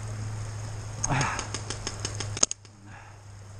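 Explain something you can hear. A paintball gun fires a rapid series of sharp pops.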